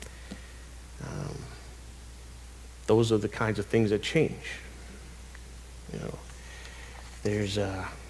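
A man preaches through a microphone in a large hall, speaking with pauses.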